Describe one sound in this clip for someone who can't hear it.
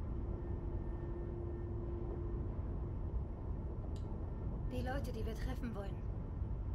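A car engine hums with a low, steady rumble.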